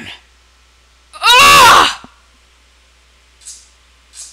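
A body is struck with a wet splat.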